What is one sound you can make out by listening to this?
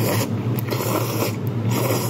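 A young man slurps noodles.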